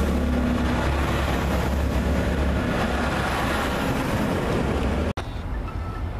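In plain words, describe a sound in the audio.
A train rumbles along a platform as it pulls away.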